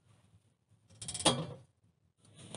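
A metal stove door clanks shut.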